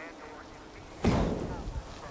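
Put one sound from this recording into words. Hands grab a ledge with a heavy thud.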